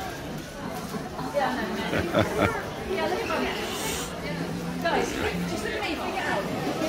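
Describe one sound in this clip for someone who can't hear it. A crowd of adults chatters indoors.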